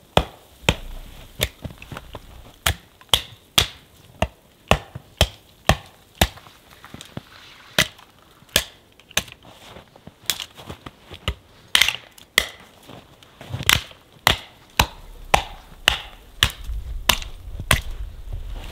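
A hatchet chops sharply into wood, blow after blow.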